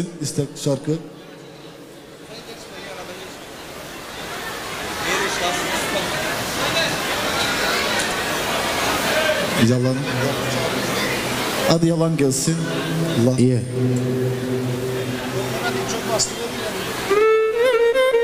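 A crowd of people chatters and murmurs in a large echoing hall.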